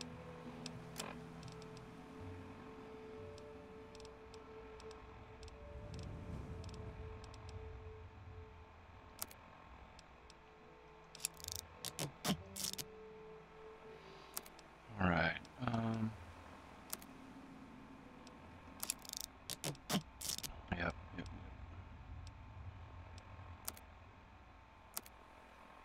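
Short, sharp menu clicks tick now and then.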